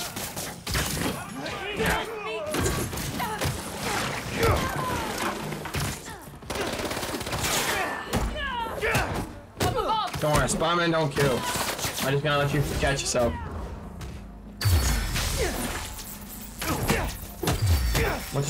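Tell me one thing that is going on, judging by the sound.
Punches and kicks thud and crack.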